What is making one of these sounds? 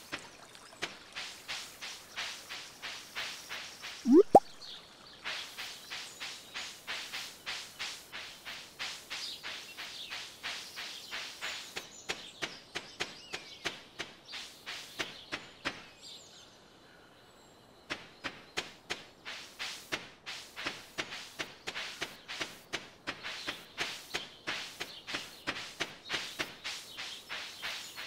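Light footsteps patter quickly and steadily on grass and dirt.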